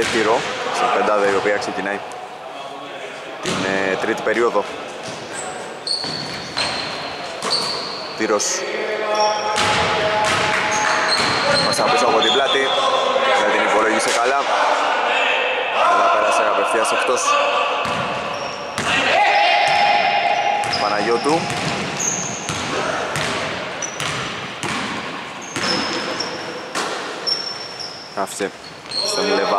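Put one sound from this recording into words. Sneakers squeak sharply on a hard court in an echoing hall.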